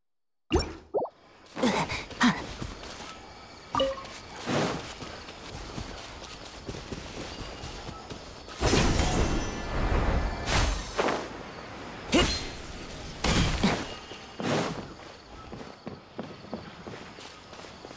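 Footsteps patter quickly over grass and wooden boards.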